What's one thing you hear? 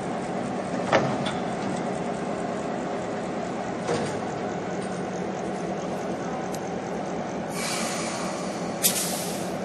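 Metal clanks sharply as a turntable carries the locomotive around.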